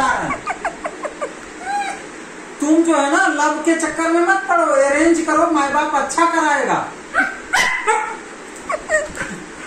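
A man speaks playfully to a dog, close by.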